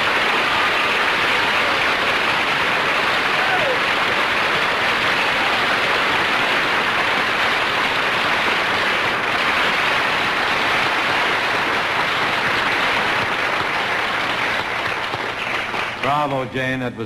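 A large audience applauds loudly and steadily.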